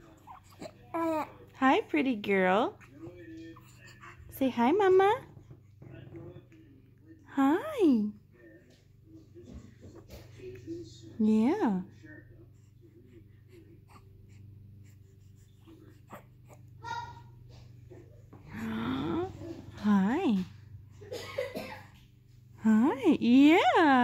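A baby coos and squeals close by.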